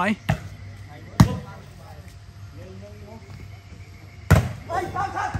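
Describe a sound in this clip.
A volleyball is struck hard by hand.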